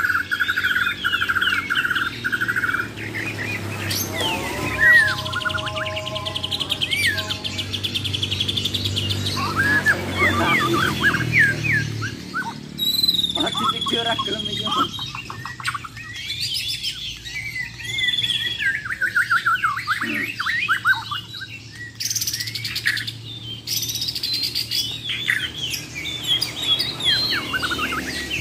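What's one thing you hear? Caged songbirds sing loud, rapid, varied chirps and whistles.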